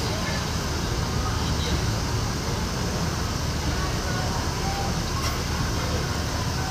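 A bus engine idles with a low, steady rumble nearby.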